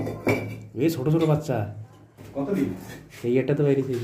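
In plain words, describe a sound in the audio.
A metal rod scrapes and knocks against bricks.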